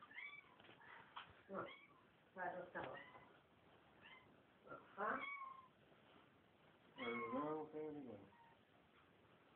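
A cat meows repeatedly, close by.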